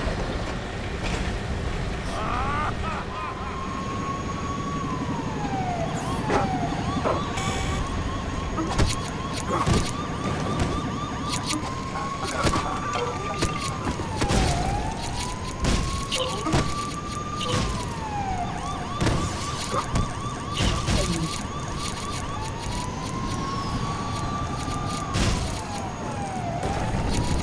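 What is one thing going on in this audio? Heavy mechanical footsteps thud as a giant robot stomps around.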